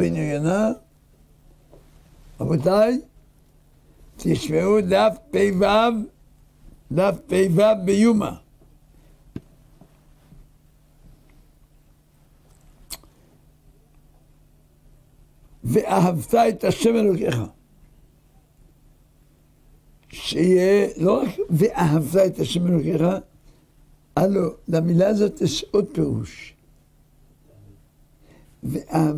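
An elderly man speaks calmly and deliberately into a close microphone, with long pauses.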